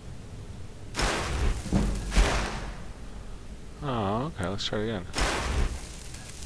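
A magic spell crackles and whooshes in bursts.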